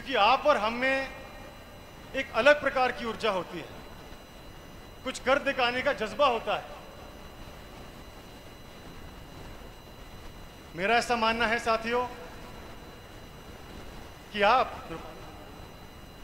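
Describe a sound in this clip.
A young man speaks loudly and forcefully into a microphone, in bursts with pauses, heard through loudspeakers outdoors.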